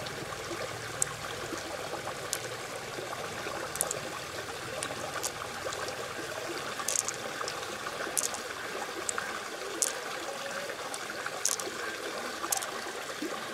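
Small beads click and rattle against each other in a hand.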